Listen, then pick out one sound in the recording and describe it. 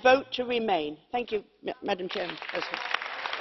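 An older woman speaks firmly into a microphone.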